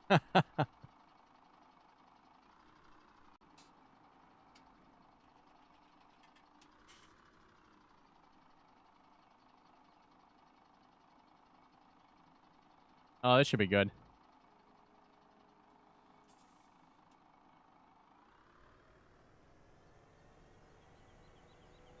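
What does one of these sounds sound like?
A tractor engine hums steadily and revs up toward the end.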